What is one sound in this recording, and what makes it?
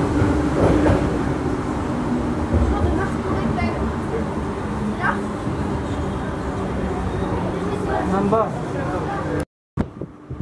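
A train rumbles and clatters steadily along its tracks.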